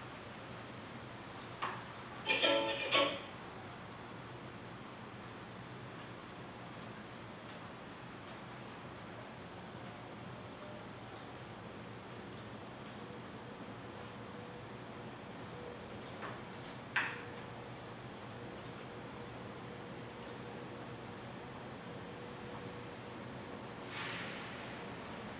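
A laptop keyboard clicks softly under typing fingers.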